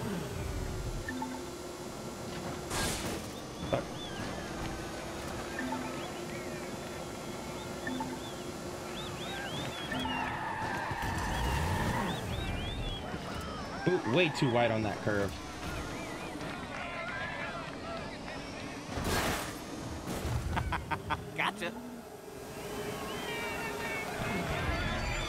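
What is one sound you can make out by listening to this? A small kart engine hums steadily while racing.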